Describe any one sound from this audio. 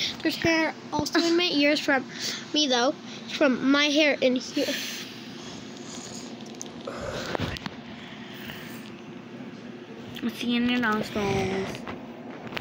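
A boy speaks close to a microphone.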